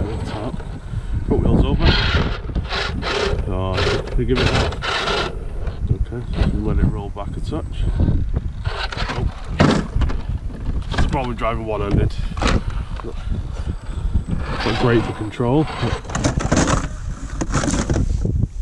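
Rubber tyres scrape and grind on rough stone.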